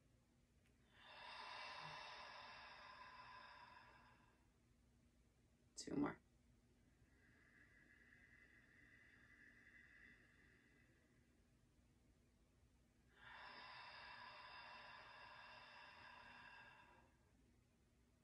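A young woman chants a long, steady tone close by.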